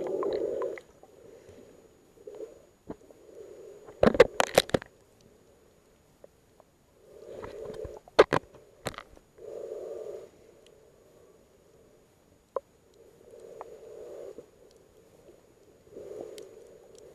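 Water gurgles and swirls in muffled bursts, heard from underwater.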